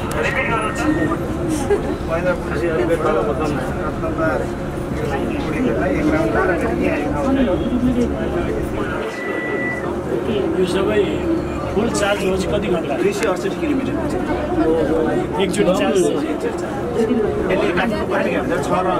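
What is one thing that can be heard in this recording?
A middle-aged man talks calmly into a nearby microphone.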